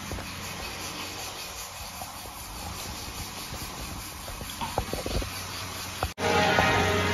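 A rolling pin rolls dough on a wooden board.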